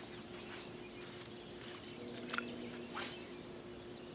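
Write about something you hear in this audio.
A fishing rod swishes as a man casts.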